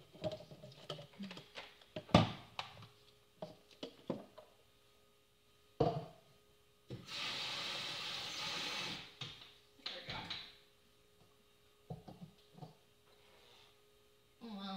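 Dishes and utensils clink and clatter.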